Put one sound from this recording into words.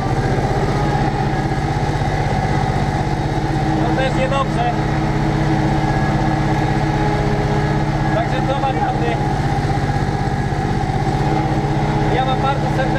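A tractor engine drones loudly and steadily, heard from inside the cab.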